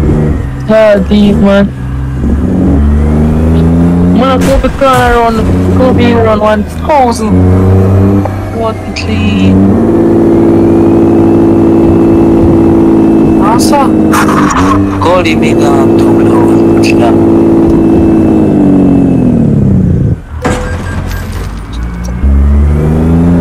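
A truck engine hums and rises and falls in pitch as gears shift.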